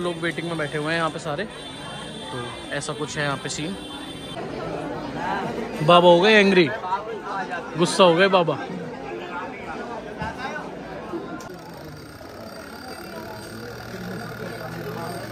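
Men and women chatter in a busy crowd nearby.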